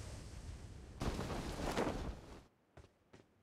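A character lands with a short rough thud and rustle.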